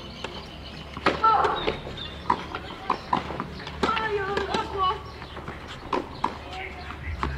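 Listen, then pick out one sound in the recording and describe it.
Tennis rackets strike a ball in a rally outdoors.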